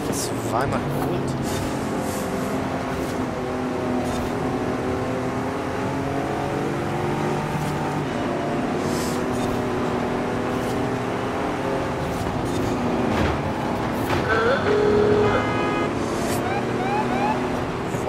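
A truck engine roars steadily as it races.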